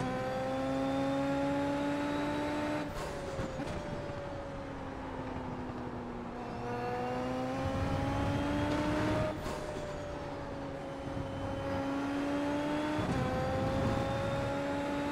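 A racing car engine whines at high revs, rising in pitch and dropping sharply at each gear change.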